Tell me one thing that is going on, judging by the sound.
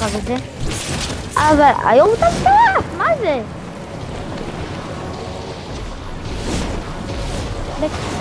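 Wind rushes steadily past during a glide through the air.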